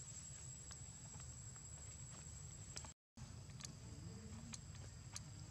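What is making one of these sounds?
Dry leaves crackle and rustle under a small monkey's feet.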